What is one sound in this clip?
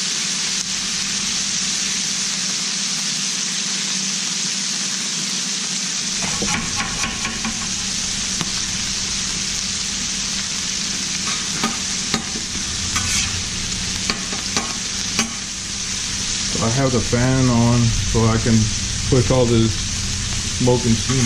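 Food sizzles steadily on a hot griddle.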